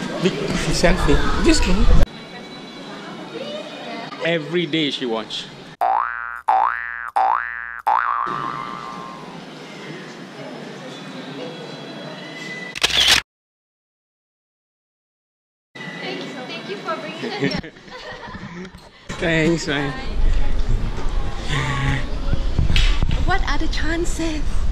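Two young women talk and laugh together close by.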